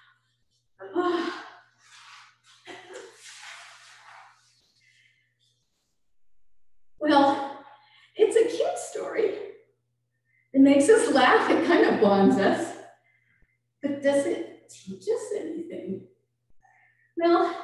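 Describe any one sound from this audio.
An older woman speaks calmly through a microphone, with pauses.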